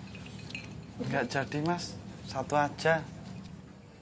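A man speaks with emphasis, close by.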